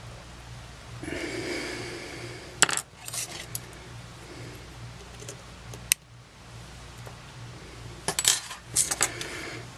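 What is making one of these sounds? A small tool clinks down onto a metal surface.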